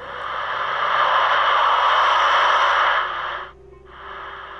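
A radio hisses with loud static that abruptly cuts off.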